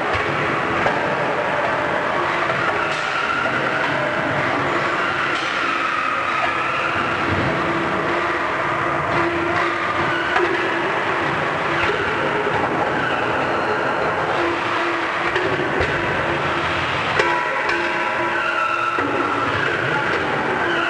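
An ice resurfacing machine hums steadily in a large echoing hall.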